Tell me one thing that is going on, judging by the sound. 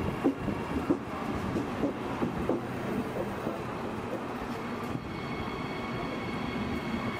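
Train wheels clatter and squeal on the track.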